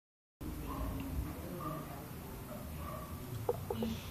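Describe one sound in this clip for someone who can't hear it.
Liquid pours into a pot.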